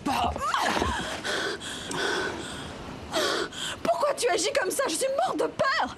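A young woman speaks in a frightened, shaky voice.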